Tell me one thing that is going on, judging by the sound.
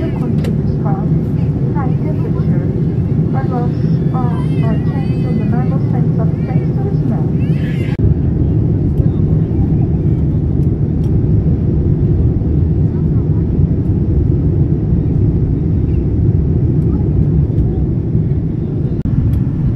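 A plane's engines roar steadily inside the cabin.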